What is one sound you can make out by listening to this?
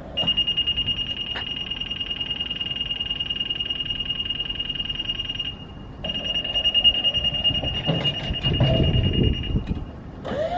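A motion alarm beeps rapidly and steadily as a lift lowers.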